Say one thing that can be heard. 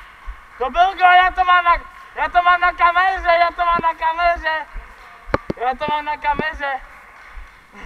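A young man shouts loudly nearby in a large echoing hall.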